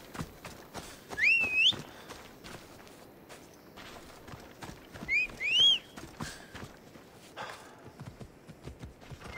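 Footsteps brush and rustle through tall grass at a steady pace.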